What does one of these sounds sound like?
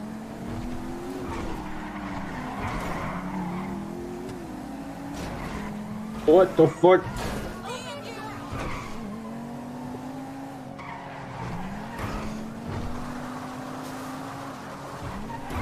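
A car engine revs and shifts through gears.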